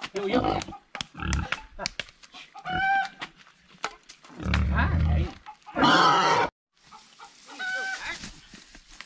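A pig squeals loudly and shrilly.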